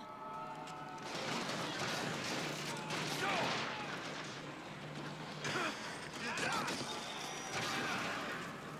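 Gunfire rattles loudly and rapidly.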